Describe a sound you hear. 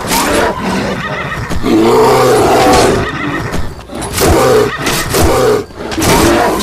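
A horse gallops, its hooves thudding on soft ground.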